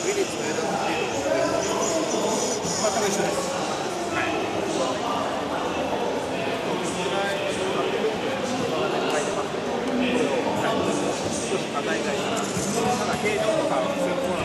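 A crowd of people chatters all around in a large, echoing hall.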